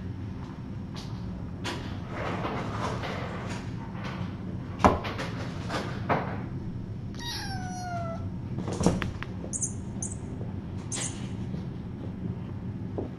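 Kittens scamper and pounce with soft thumps and rustles.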